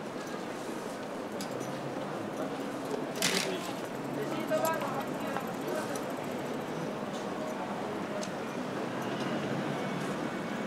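A busy street murmurs with traffic outdoors.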